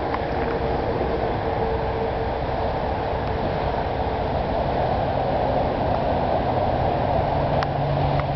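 A train rumbles as it approaches along the tracks.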